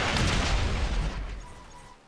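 Metal scrapes and grinds as a car crashes.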